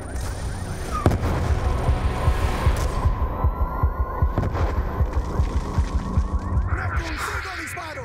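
Heavy gunfire and blasts rumble in rapid bursts.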